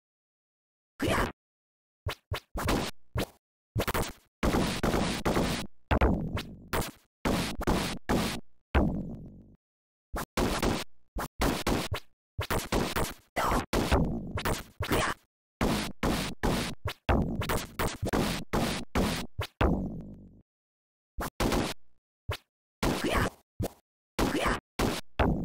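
Arcade game fight sounds of hits, slashes and grunts play in quick bursts.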